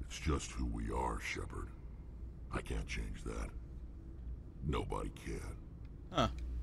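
A man speaks in a deep, gravelly voice.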